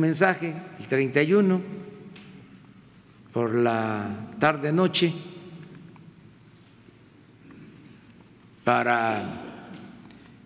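An elderly man speaks slowly and deliberately into a microphone, with pauses between phrases, in a room with a slight echo.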